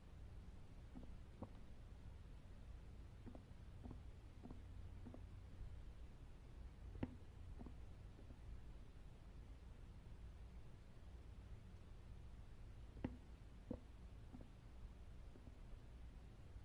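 Slow footsteps thud softly on a floor.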